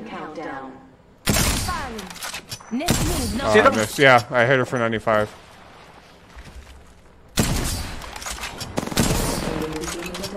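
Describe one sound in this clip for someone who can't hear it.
A sniper rifle fires single loud shots.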